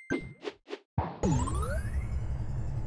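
A whooshing sound effect rises sharply.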